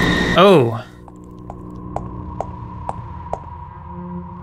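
Light footsteps tap at an even pace.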